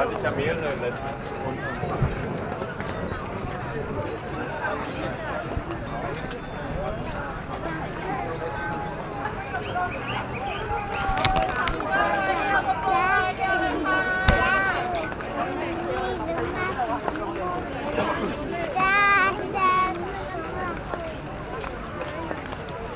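A busy crowd murmurs all around outdoors.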